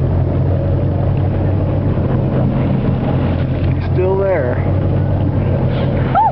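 A boat engine hums steadily nearby.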